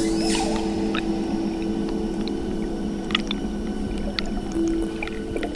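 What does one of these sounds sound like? Bubbles pop and fizz underwater.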